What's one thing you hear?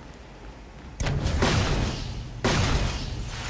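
Fiery explosions roar and crackle.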